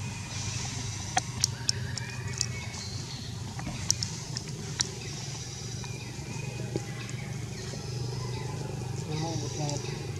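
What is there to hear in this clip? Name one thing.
A monkey chews and munches on juicy fruit close by.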